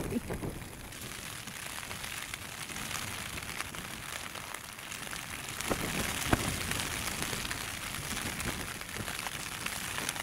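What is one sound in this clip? Rain patters steadily on a tent.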